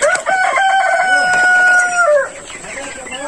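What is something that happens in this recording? A hen lets out a long, loud squawk close by.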